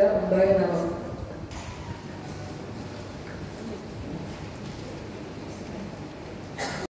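A choir of men and women sings together in a large echoing hall.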